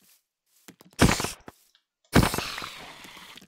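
Sharp blows strike a spider.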